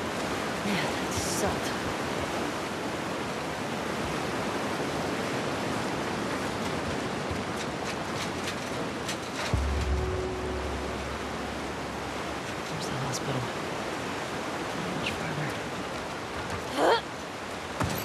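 Footsteps clang on metal stairs and walkways.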